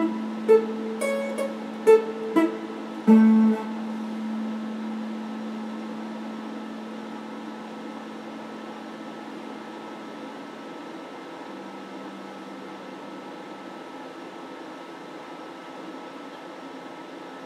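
An electric guitar plays a few plucked notes that ring out and slowly fade.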